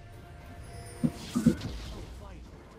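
Magic blasts and weapon strikes clash in a small battle.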